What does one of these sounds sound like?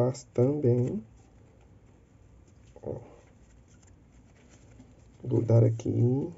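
Stiff ribbon rustles softly as hands fold it.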